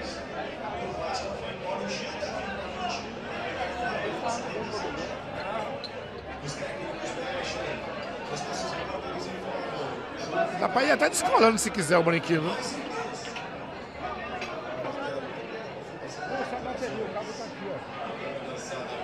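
A crowd of men murmurs and chatters in a large room.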